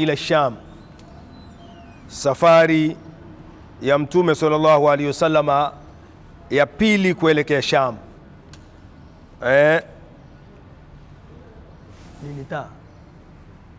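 An elderly man chants in a melodic voice in short phrases with pauses, close to a microphone.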